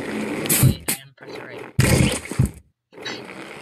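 A wet impact splatters.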